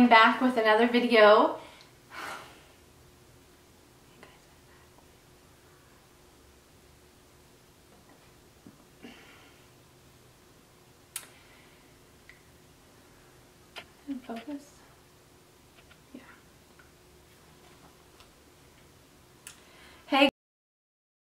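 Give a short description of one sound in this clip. A young woman talks brightly and close by, with long silent pauses.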